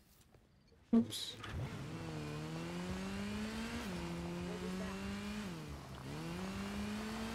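A motorcycle engine starts with a roar and revs up and down while riding.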